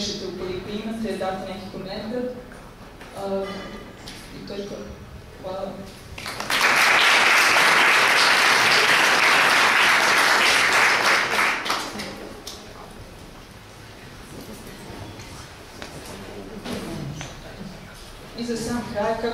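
A young woman speaks calmly into a microphone over a loudspeaker.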